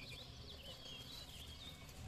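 Scissors snip a plant stem.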